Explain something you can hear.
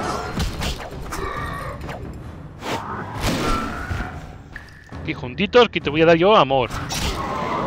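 Swords clash and slash in quick strikes.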